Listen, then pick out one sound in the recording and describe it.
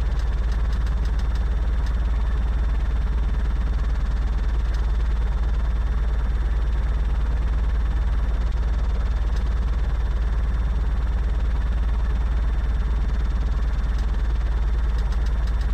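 A small propeller aircraft engine drones steadily.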